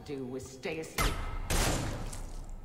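Gunshots ring out sharply, one after another.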